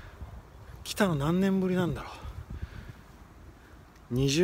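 A young man speaks close up in long, drawn-out exclamations.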